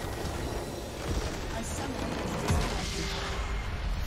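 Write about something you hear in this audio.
A large structure explodes with a booming crash.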